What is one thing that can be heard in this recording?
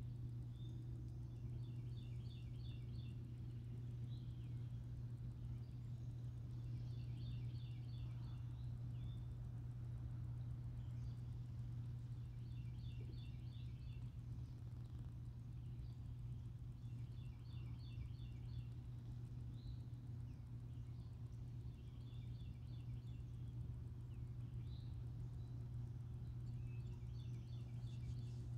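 Wind blows steadily across the open water.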